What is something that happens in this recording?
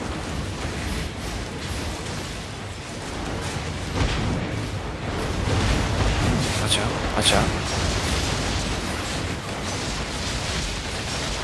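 Magic blasts and weapon clashes crackle and boom in a busy battle.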